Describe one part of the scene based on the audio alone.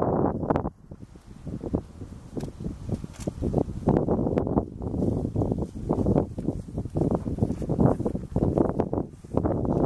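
Horses munch and chew feed close by.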